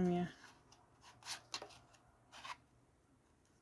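Stiff cards rustle and tap as they are shuffled in the hands.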